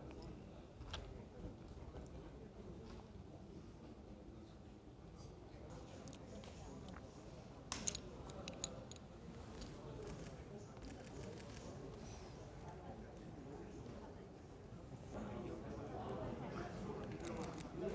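A plastic game token clicks down onto a board.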